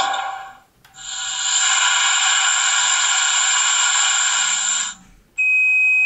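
A model diesel locomotive's speaker plays compressed air hissing out.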